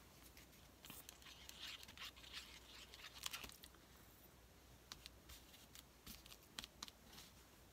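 A glue bottle squeezes and taps on paper.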